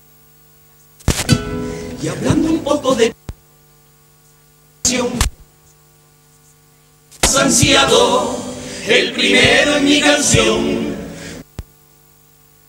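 A group of men sing loudly together.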